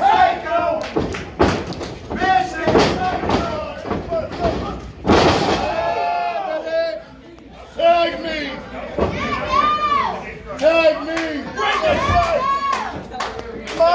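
Bodies slam heavily onto a mat.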